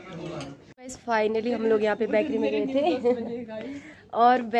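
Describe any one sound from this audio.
A young woman talks close by, with animation.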